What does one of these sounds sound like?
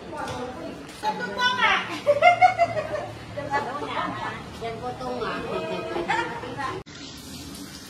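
A middle-aged woman talks and laughs with animation among a small group.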